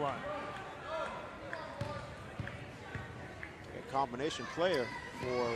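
Players and spectators shout and call out in an echoing gym.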